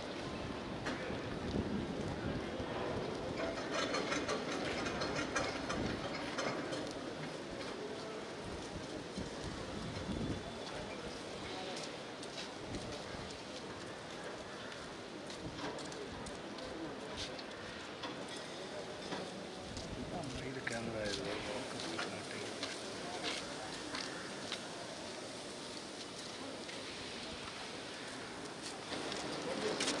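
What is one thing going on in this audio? Footsteps of a group walking outdoors shuffle on pavement.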